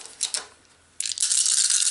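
Dice rattle as they are shaken in a hand.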